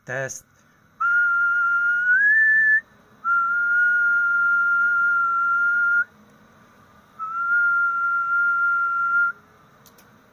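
A radio transmitter gives out long, steady whistling tones in bursts, with short pauses between them.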